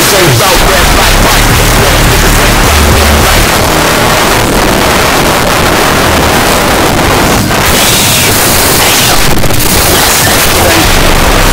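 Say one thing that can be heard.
Loud rap music plays with a heavy, thumping beat.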